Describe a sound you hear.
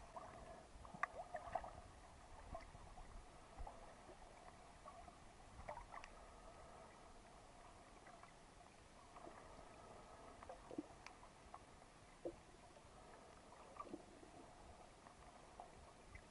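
Muffled underwater water sloshes with faint crackles and clicks.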